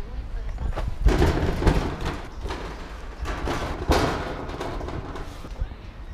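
Metal scaffolding clanks as a person climbs on it.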